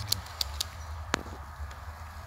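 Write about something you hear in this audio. A water valve clicks softly as a finger presses it.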